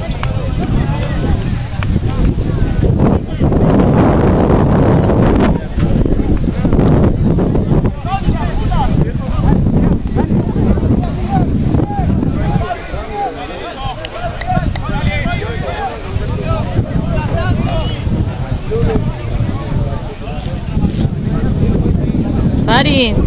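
Young men shout and call to each other from a distance, outdoors in wind.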